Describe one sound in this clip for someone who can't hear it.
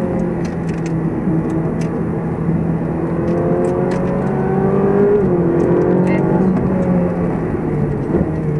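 A car engine hums steadily from inside the car, rising and falling in pitch as it drives along.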